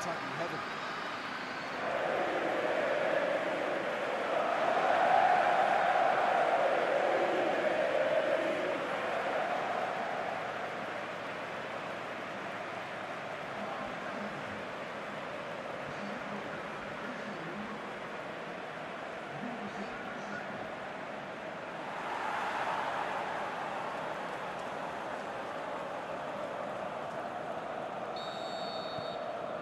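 A large stadium crowd roars and cheers, swelling loudly and then settling.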